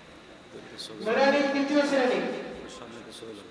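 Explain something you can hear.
A man chants loudly in a drawn-out singing voice through a microphone.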